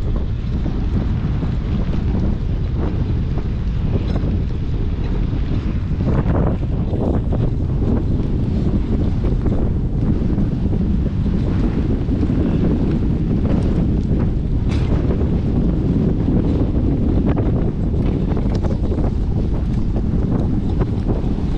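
Bicycle tyres crunch over a wet dirt track.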